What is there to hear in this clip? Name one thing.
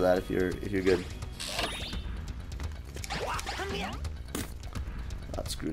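Cartoonish game sound effects chirp and whoosh.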